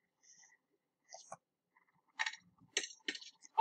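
Roller skates clatter and scrape.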